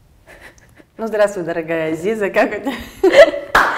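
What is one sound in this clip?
A young woman speaks cheerfully close by.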